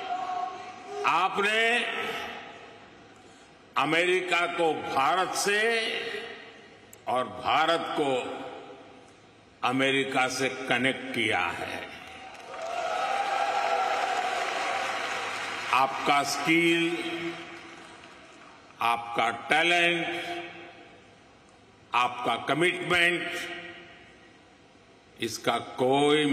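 An elderly man speaks slowly and forcefully into a microphone in a large echoing hall.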